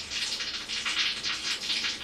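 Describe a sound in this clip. A newborn kitten mews faintly.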